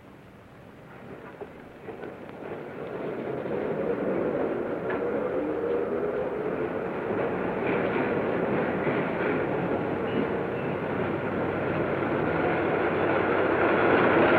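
A train rumbles along the tracks and grows louder.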